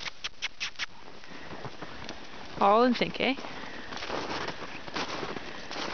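Horses gallop, hooves thudding on snow.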